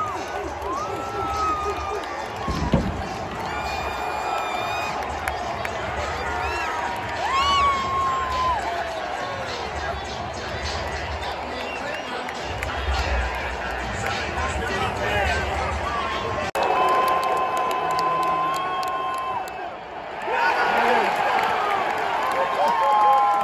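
Fans nearby whoop and shout loudly.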